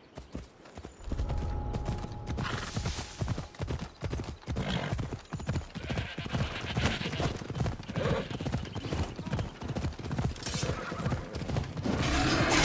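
Hooves gallop over grass at a quick, even beat.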